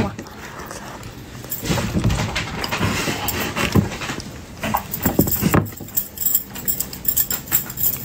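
A young woman chews food with wet, crunchy sounds.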